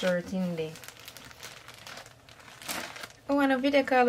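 Plastic packaging crinkles.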